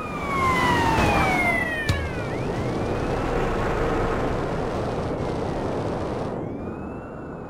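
A jetpack engine roars steadily.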